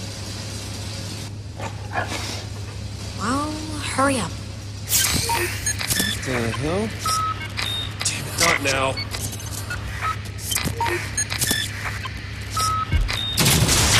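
A handheld gadget chirps and beeps electronically.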